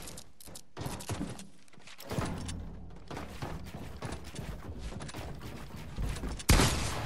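Game building pieces snap into place with quick clattering clicks.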